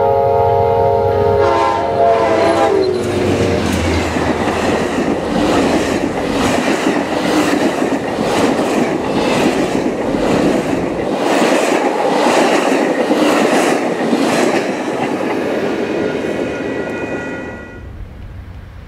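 A passenger train rumbles and clatters past close by.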